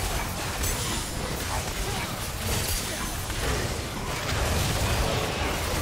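Game characters' attacks hit with sharp impacts.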